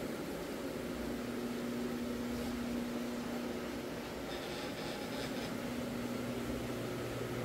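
A floor buffer machine hums and whirs steadily as its pad spins over carpet.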